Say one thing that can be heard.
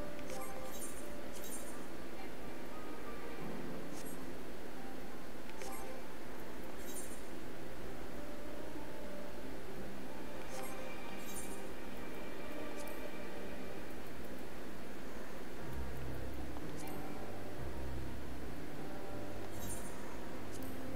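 Soft game menu clicks and chimes sound now and then.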